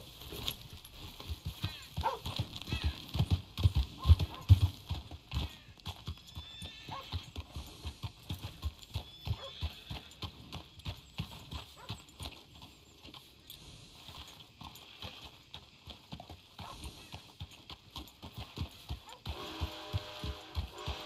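A horse's hooves thud steadily on a dirt road.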